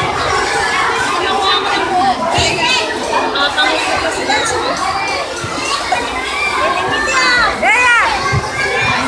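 A large crowd of young children chatter and shout loudly nearby.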